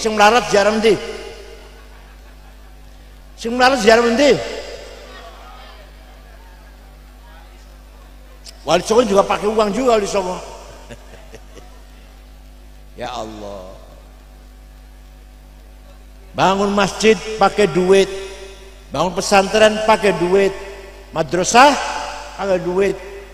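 An elderly man speaks calmly into a close microphone, pausing between phrases.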